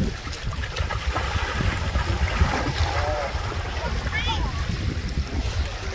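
Water splashes around feet wading in.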